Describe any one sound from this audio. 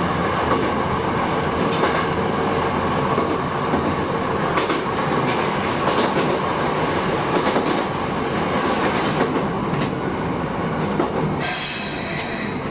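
A train rumbles and clatters steadily along the rails.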